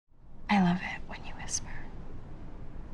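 A young woman speaks softly up close.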